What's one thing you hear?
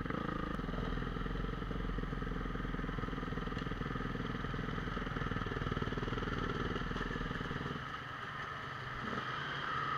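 A motorcycle engine rumbles steadily close by, then drops to a quieter idle.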